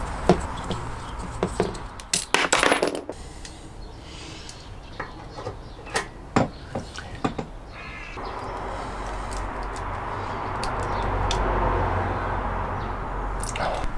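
A hose rustles and scrapes as it is moved.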